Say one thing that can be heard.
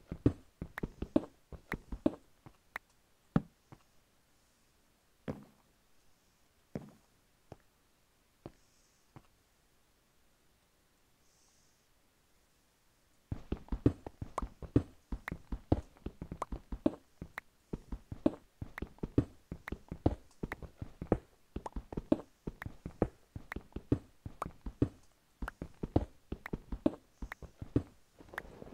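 A pickaxe chips rapidly at stone blocks with sharp clicking knocks.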